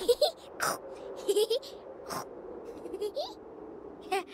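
Young children squeal and laugh playfully.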